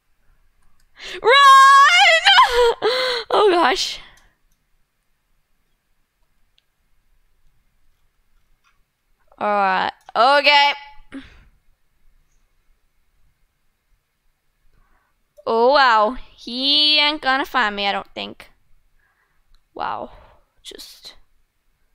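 A young girl talks with animation into a headset microphone, in short bursts.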